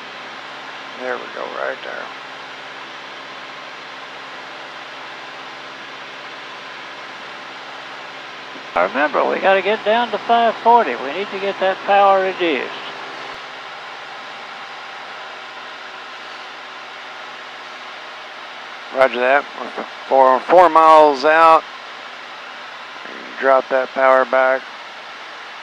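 A man speaks calmly through a headset intercom.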